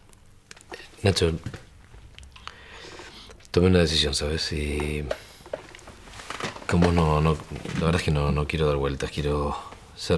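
A man speaks calmly and seriously close by.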